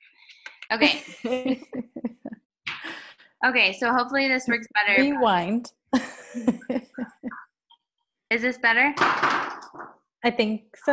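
Young women laugh over an online call.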